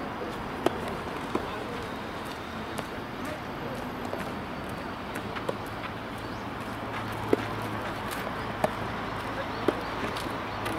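Tennis balls pop off rackets in a rally, heard from a distance outdoors.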